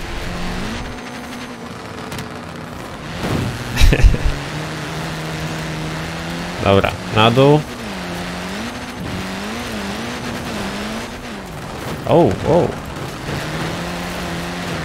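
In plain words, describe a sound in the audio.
A young man talks briefly into a microphone.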